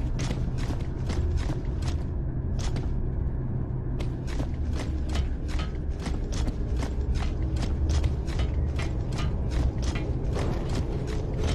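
Heavy armored boots run on a metal floor.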